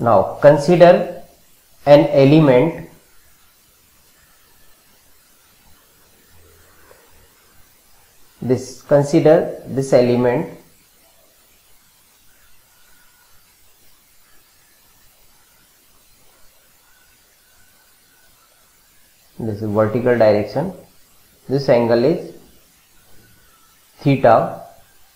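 A man speaks calmly into a close microphone, in short phrases with long pauses.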